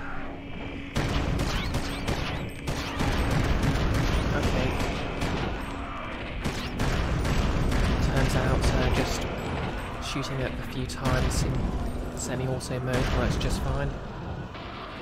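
Fighting sounds from a video game crash and thud with many sharp hits.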